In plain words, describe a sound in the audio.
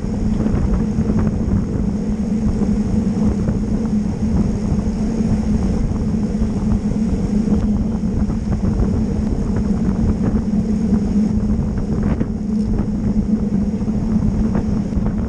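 Bicycle gears and chains tick and click.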